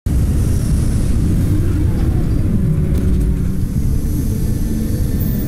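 Jet thrusters roar steadily with a deep rumble.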